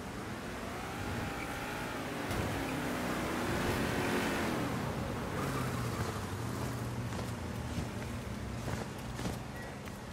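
A car engine revs and rumbles.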